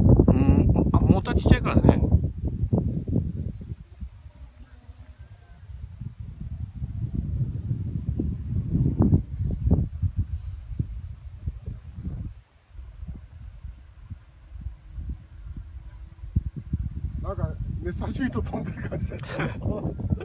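A radio-controlled model plane drones in the distance overhead.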